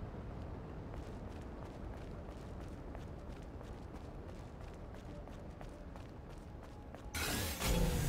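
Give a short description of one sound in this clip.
Footsteps patter quickly on sandy ground.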